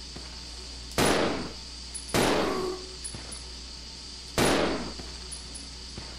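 A pistol fires single shots that echo in a hard, enclosed space.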